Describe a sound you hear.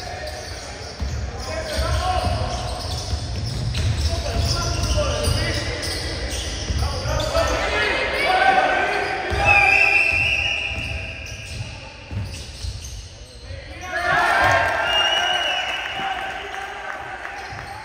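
Basketball shoes squeak sharply on a wooden floor.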